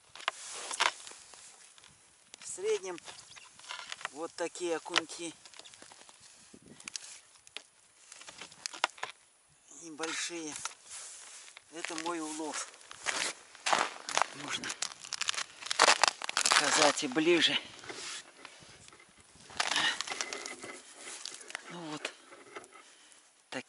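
Frozen fish rattle as a man handles them.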